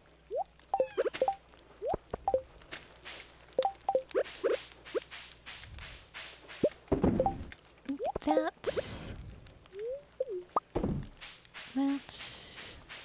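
Short pitched game blips and pops sound as items are picked and placed.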